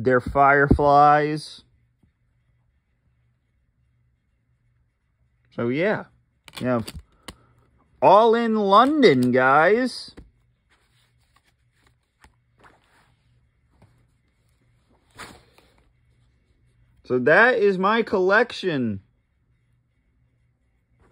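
Plastic disc cases click and rattle as a hand handles them.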